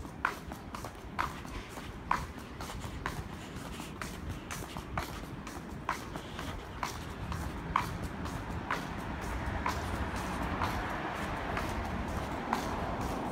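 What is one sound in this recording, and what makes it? Footsteps tap steadily on pavement outdoors.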